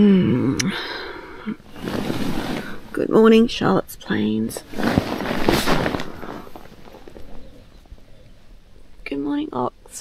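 Tent fabric rustles close by.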